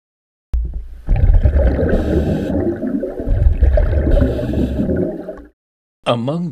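A diver's breathing gear bubbles and rumbles underwater.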